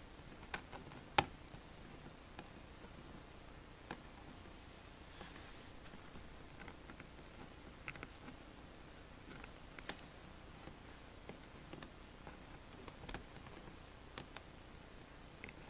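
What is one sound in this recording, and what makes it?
Fingers tap and scrape on a hard surface with small, scattered clicks.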